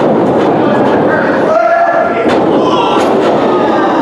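A body slams onto a ring mat with a heavy thud.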